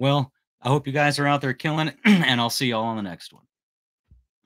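A man speaks with animation, close into a microphone.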